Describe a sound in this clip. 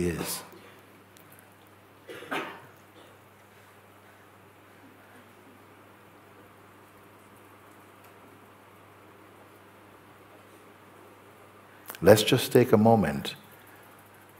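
An elderly man speaks calmly and softly into a close microphone, with long pauses.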